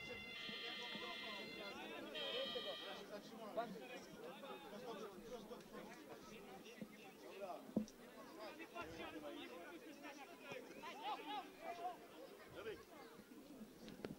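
Spectators and players call out and talk outdoors.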